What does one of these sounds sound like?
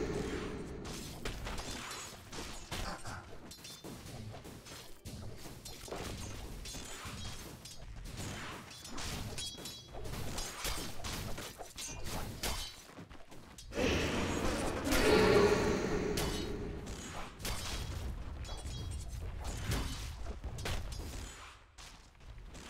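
Sword clashes and magic blasts ring out in a busy fight.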